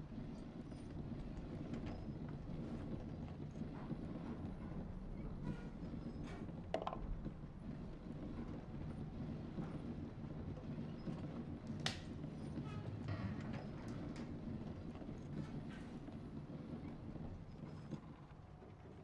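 A small ball rolls and rumbles along a wooden track.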